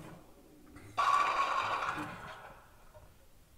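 Bowling pins crash and clatter loudly.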